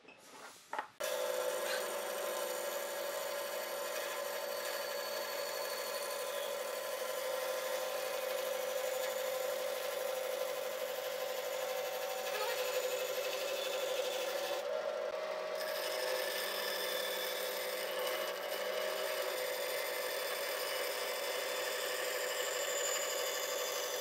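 A band saw whines steadily as it cuts through a wooden log.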